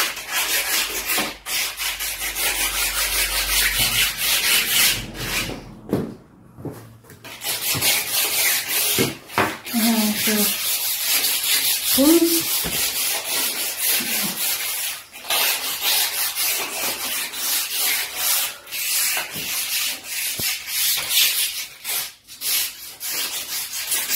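A cloth wipes and squeaks against a glass door pane.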